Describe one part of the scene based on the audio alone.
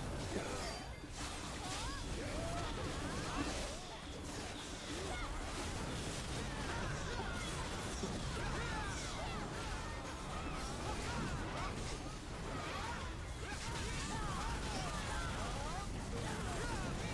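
Blades strike and clang in a rapid fight.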